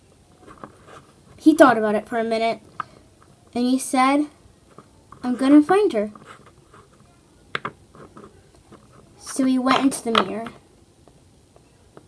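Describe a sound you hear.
A small plastic toy taps lightly on a hard surface.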